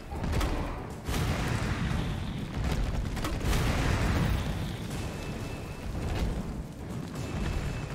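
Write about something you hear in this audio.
Flames roar and crackle as a creature burns.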